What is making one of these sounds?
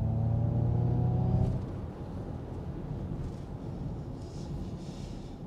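Tyres rumble on the road beneath a moving car.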